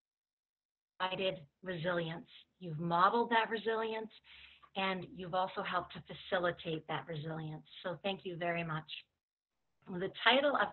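A middle-aged woman talks calmly and closely through a computer microphone, as on an online call.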